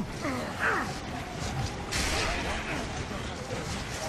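Heavy boots thud on stone as a soldier runs.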